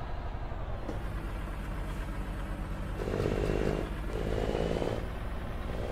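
Tyres crunch over a dirt road.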